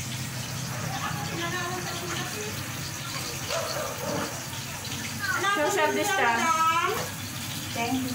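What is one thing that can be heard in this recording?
A woman speaks nearby in a lively voice.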